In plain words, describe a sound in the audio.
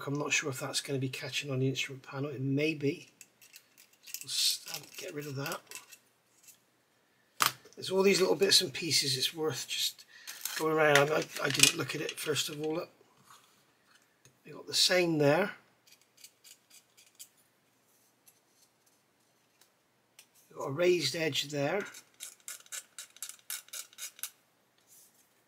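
A small metal tool scrapes and picks at hard plastic.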